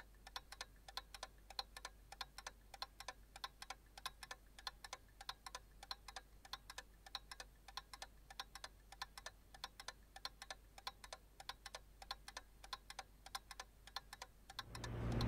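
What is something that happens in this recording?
A watch bezel clicks rapidly as it is turned.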